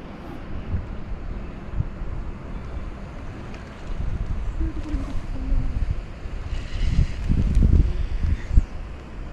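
Wind blows in gusts across the microphone outdoors.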